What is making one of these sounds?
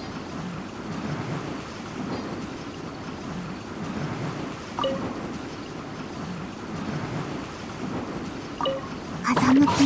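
Crystals shatter with bright chimes.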